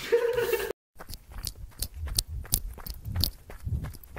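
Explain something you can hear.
Footsteps tread on the ground.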